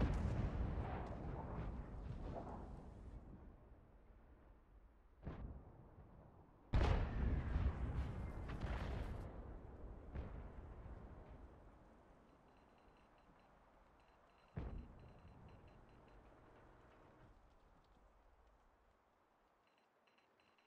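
A tank cannon fires with heavy booms that rumble and fade away.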